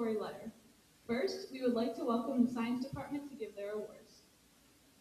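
A young woman speaks calmly into a microphone over a loudspeaker in an echoing hall.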